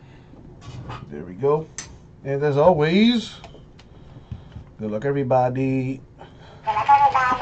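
A toy hamster chatters back in a squeaky, sped-up voice.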